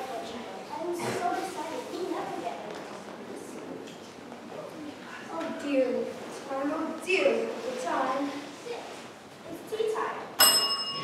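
Children speak lines on a stage, heard from the audience in an echoing hall.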